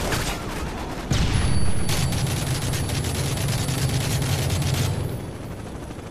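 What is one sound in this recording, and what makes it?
Rifles fire in rapid bursts of gunshots.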